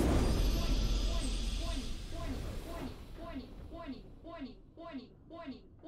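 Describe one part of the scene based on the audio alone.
A short tune plays in repeated falling notes.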